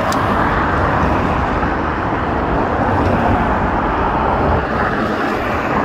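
Cars drive past close by on a road.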